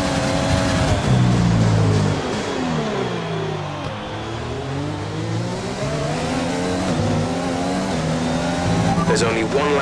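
A racing car engine drops in pitch as the car brakes hard, then climbs again through the gears.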